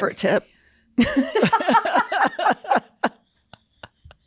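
A woman laughs loudly into a close microphone.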